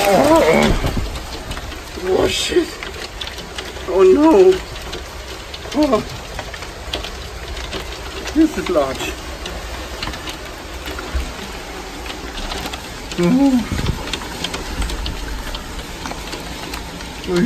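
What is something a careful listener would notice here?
Hail patters and clatters steadily outdoors.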